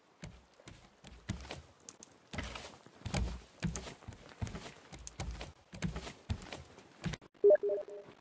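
Footsteps thud on hollow wooden planks.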